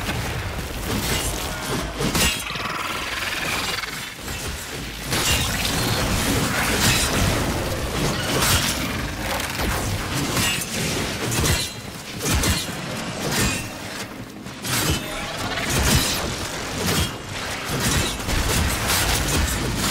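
Energy blasts crackle and boom.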